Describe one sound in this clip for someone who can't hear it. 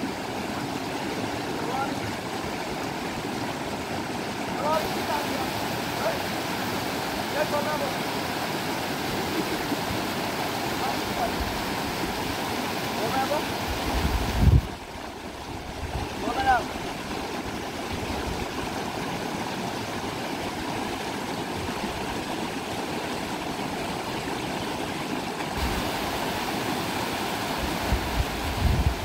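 A shallow river rushes loudly over rocks.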